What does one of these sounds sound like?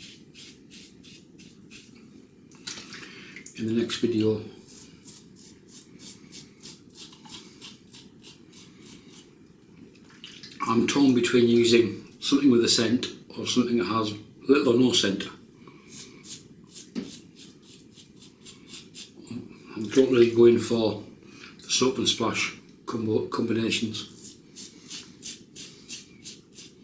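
A razor scrapes across stubble in quick, rhythmic strokes.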